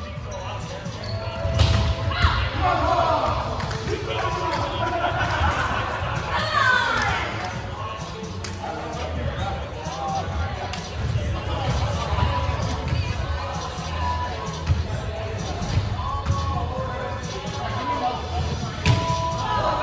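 Young men and women call out to each other, echoing in a large hall.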